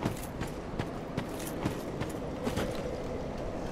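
Armoured footsteps clank and crunch on rough ground.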